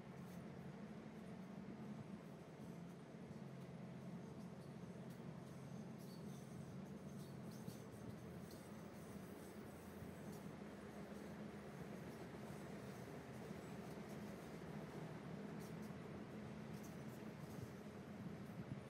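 A long freight train rumbles steadily along the tracks in the distance.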